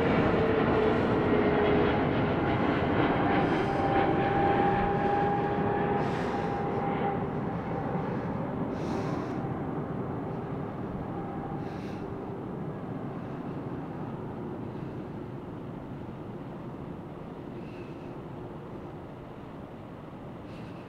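A jet airliner's engines roar and whine overhead, slowly fading.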